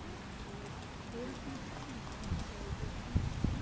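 Men talk faintly in the distance.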